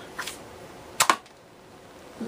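A plastic toy launcher snaps as it fires a foam dart.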